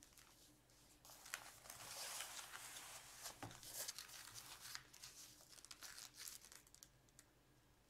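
Paper rustles and slides as it is moved.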